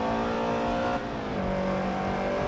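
A car engine drops briefly in pitch at a gear change.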